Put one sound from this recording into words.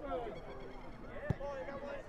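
A football is kicked hard on grass.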